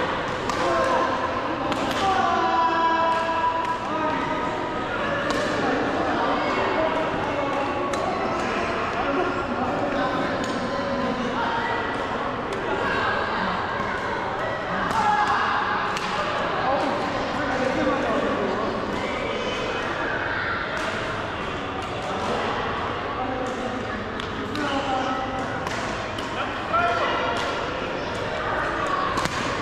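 Badminton rackets smack shuttlecocks in sharp pops.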